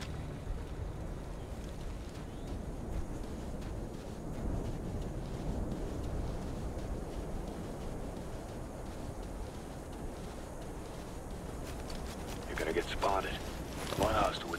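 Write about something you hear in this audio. Footsteps crunch quickly over dry sand and dirt.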